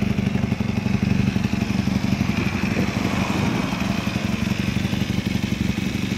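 A motorcycle engine idles with a steady, rapid putter close by.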